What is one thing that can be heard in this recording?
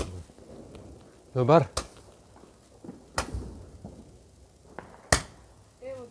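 A firework fountain hisses and crackles as it sprays sparks.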